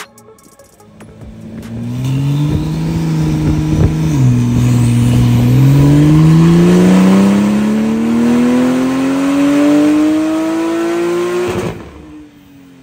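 A car engine roars loudly, revving up through the gears.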